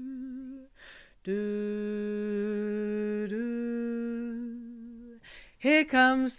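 A woman sings long, steady held notes close to a microphone, with slight pitch changes.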